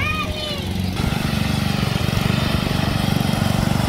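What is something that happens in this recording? A riding lawn mower engine runs with a steady rumble.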